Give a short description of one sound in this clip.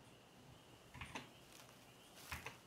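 Leaves rustle briefly as a bush is picked.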